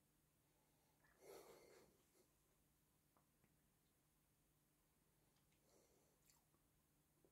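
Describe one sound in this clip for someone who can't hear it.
A man quietly sips a drink from a glass.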